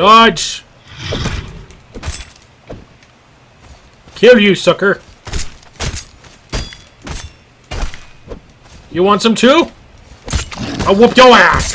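A blade strikes into flesh.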